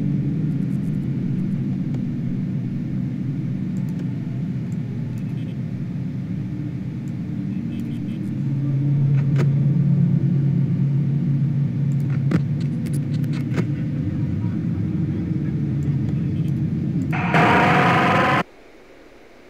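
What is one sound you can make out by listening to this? A fan hums steadily with a low drone.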